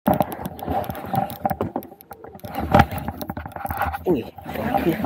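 Water slaps against the hull of a small boat.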